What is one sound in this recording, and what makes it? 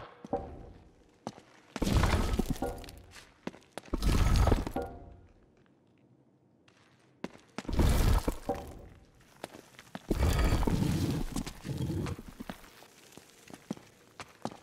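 Footsteps tread on a stone floor.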